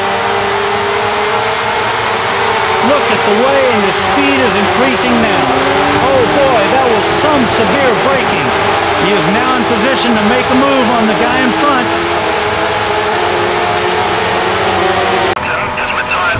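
A racing car engine whines loudly at high revs, rising and falling as gears change.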